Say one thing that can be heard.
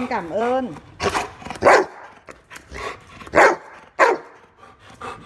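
A dog barks loudly and sharply up close.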